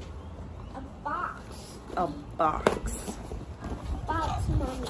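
A small boy speaks close by.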